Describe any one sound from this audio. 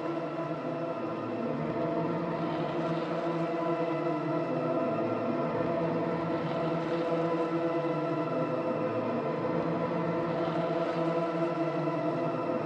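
A synthesizer plays layered, droning electronic tones that slowly shift.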